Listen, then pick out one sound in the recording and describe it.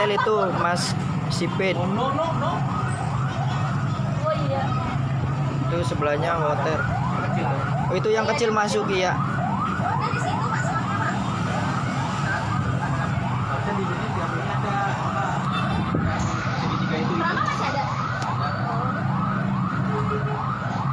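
A crowd of people shouts and talks in the street below.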